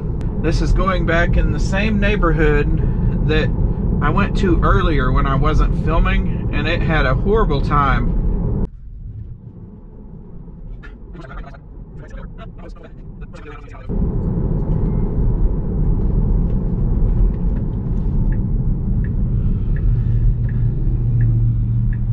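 A car's tyres rumble steadily on the road from inside the car.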